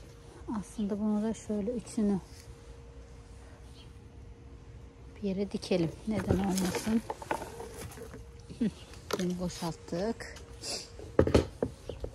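A plastic tub knocks and rattles as it is handled.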